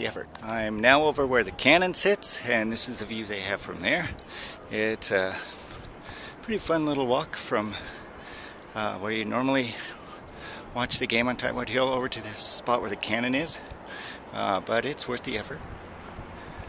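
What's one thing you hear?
An older man talks calmly, close to the microphone.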